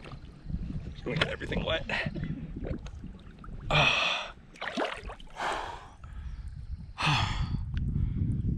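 A man talks with animation close to a microphone, outdoors in wind.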